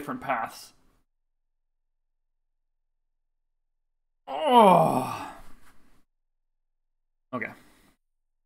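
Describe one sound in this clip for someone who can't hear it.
A young man speaks with animation into a close microphone, in short bursts.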